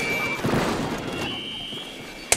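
Ink splatters and sprays with wet bursts.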